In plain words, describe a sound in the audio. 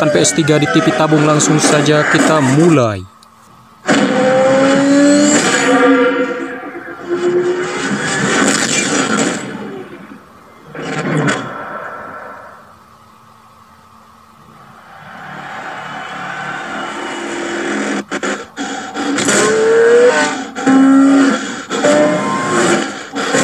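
Loud music and sound effects play from a television speaker.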